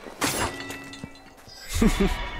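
A large metal bell clangs and rings out briefly.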